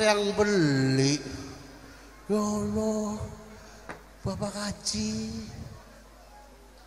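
A man sings through a microphone over loudspeakers.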